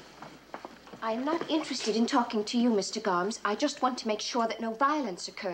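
A woman speaks anxiously nearby.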